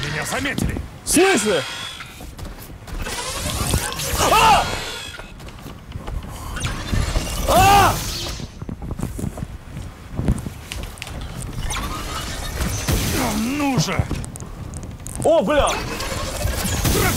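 A young man exclaims loudly nearby.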